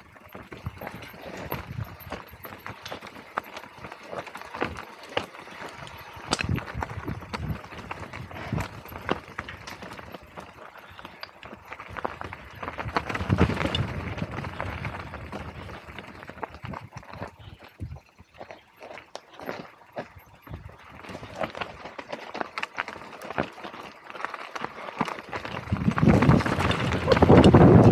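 A mountain bike's frame and chain clatter over bumps.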